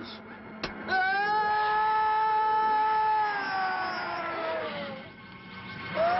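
A man lets out a long, drawn-out scream as he falls.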